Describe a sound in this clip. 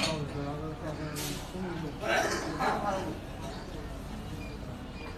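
A man slurps and chews food noisily.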